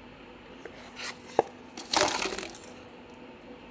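Plastic packaging rustles and crinkles in someone's hands.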